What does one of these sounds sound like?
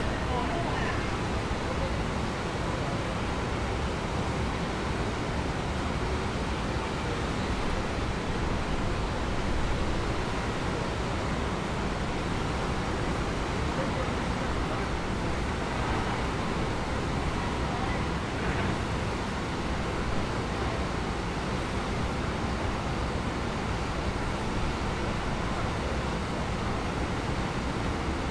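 Wind blows loudly outdoors, rumbling steadily.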